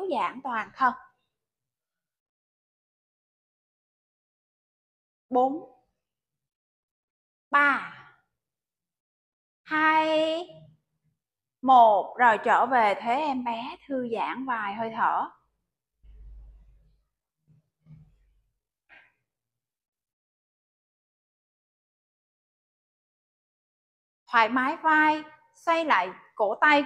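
A woman gives calm spoken instructions, pausing between phrases.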